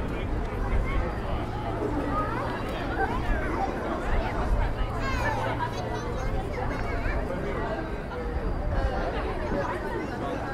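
A crowd of people chatter all around outdoors.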